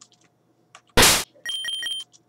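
A video game swoosh sounds briefly.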